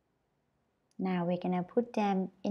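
A young woman speaks clearly and slowly into a close microphone.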